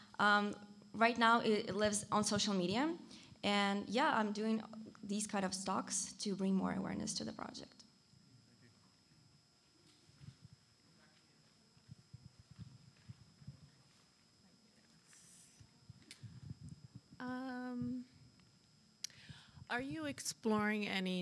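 A young woman speaks calmly into a microphone, heard through a loudspeaker in a large room.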